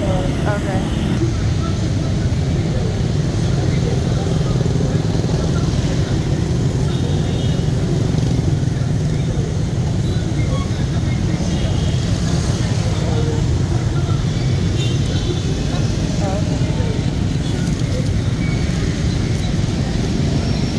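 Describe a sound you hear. Many motorbike engines hum and buzz steadily as traffic streams past.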